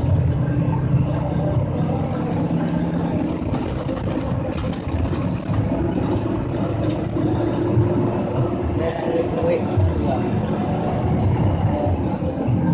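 A bus rattles and creaks as it rolls over the road.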